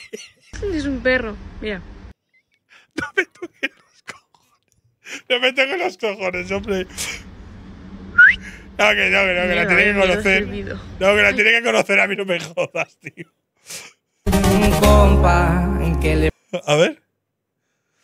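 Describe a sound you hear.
A young man talks and laughs with animation into a close microphone.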